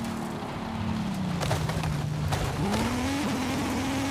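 Tyres screech while drifting.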